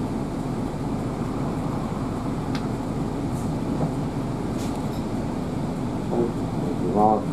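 A vehicle engine rumbles steadily up close.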